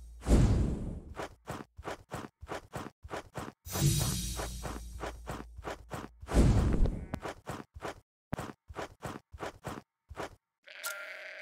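Footsteps thud quickly and evenly across grass.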